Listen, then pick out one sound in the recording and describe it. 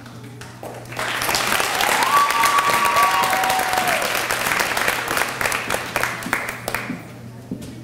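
An audience applauds.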